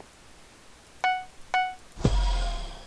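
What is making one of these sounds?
Two short bright chimes ring out in quick succession.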